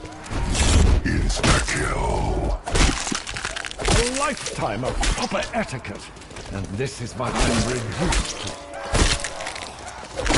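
Zombies snarl and groan.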